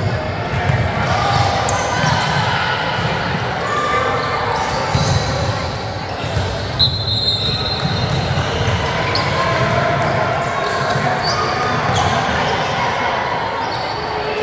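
Young women call out to each other during play.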